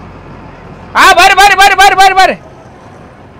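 A bus horn honks in quick bursts.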